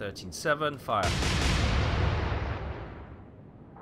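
A large naval gun fires with a deep booming blast.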